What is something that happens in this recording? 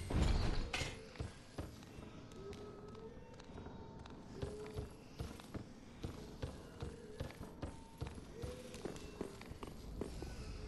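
Armoured footsteps clank on wooden boards.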